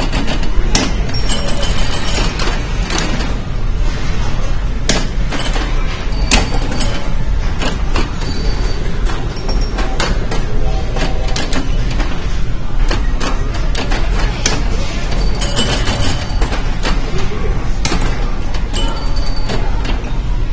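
A pinball machine's bumpers and targets ding and click rapidly.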